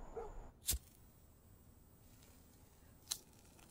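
A match flame hisses softly.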